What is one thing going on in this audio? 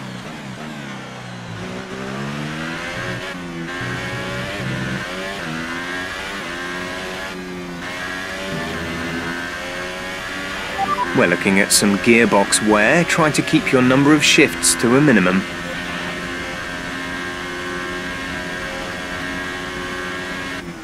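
A racing car engine screams at high revs, rising in pitch and dropping with each gear change.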